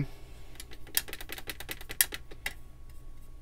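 A paintbrush scrubs and taps in a paint tray.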